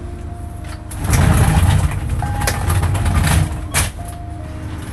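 A stretcher rattles as a man moves it.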